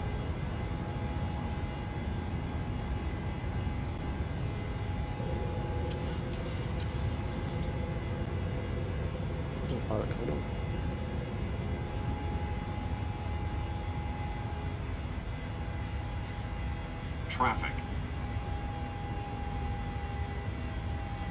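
A jet engine hums steadily with a low rumble.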